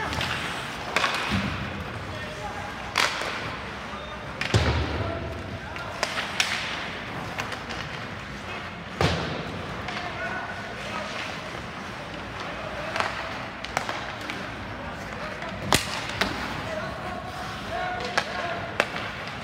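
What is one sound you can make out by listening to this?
Hockey sticks clack against the puck with sharp knocks, echoing in a large hall.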